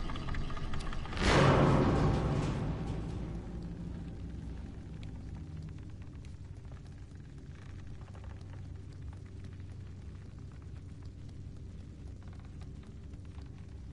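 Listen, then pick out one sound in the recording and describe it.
Small footsteps patter softly on a hard floor.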